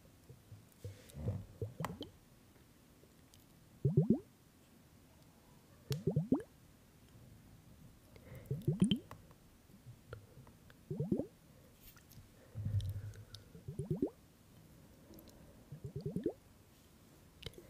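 A young woman gulps water loudly, close to a microphone, in repeated swallows.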